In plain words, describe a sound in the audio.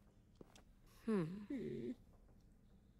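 A young woman speaks briefly into a microphone.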